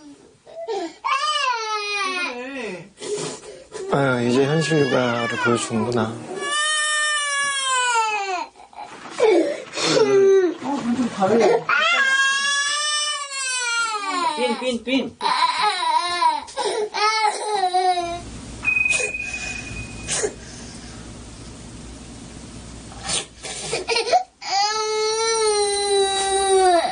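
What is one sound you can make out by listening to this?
A toddler cries and wails loudly.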